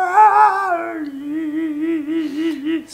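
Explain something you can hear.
A middle-aged man hums a wavering, mocking tune through clenched teeth.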